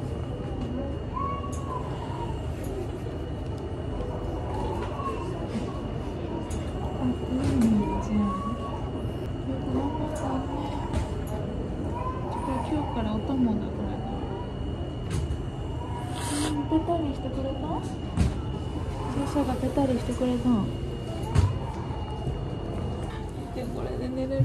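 A baby babbles close by.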